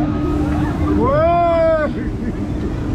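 A man shrieks loudly on the ride.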